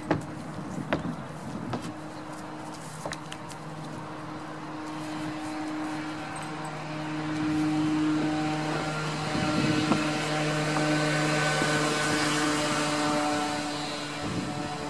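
Small goats' hooves tap and clatter on wooden boards.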